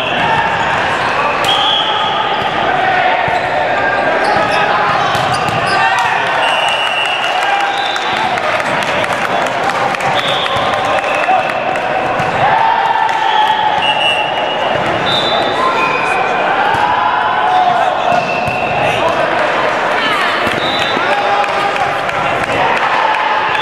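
Young men call out and talk in a large echoing gym.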